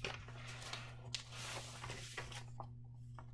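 A sheet of paper rustles as it is laid down on a table.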